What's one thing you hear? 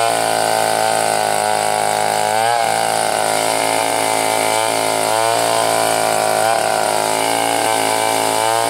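A chainsaw roars loudly up close, its engine revving up and down as it cuts through a log.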